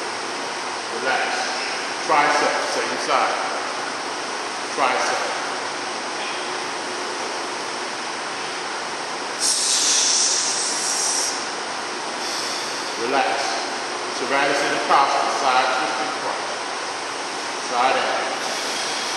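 A man speaks in short bursts nearby, in an echoing room.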